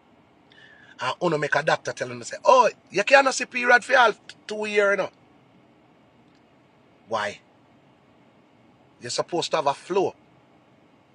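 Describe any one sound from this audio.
A man speaks with animation close to a phone microphone, in bursts with pauses.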